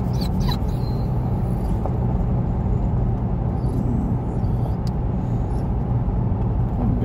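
Tyres rumble steadily on the road from inside a moving car.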